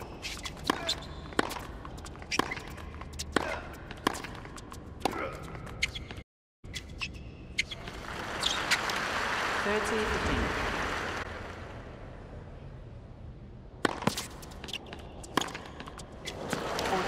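Tennis balls are struck back and forth with sharp pops.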